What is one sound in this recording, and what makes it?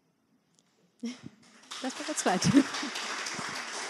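A young woman laughs into a microphone.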